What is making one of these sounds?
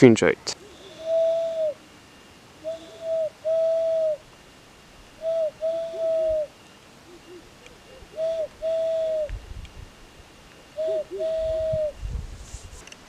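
A man blows a short, steady whistle call, again and again, outdoors.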